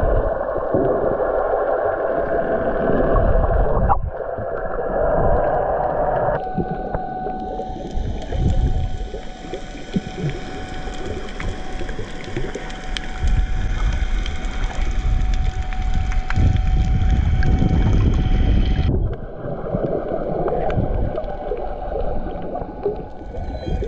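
Water rumbles and rushes in a muffled way underwater.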